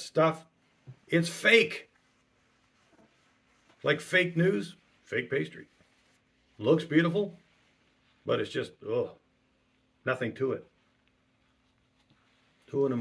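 A middle-aged man speaks calmly in short phrases with pauses, close to a microphone.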